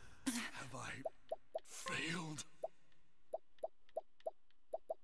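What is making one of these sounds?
Short menu blips sound in quick succession.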